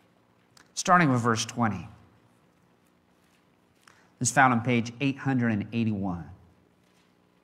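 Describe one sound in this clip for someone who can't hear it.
A man reads out calmly through a microphone.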